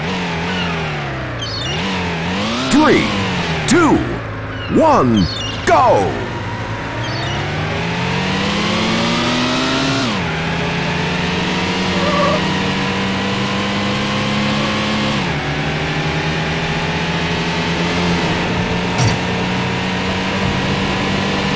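A car engine revs up and down, then roars steadily as the car speeds along.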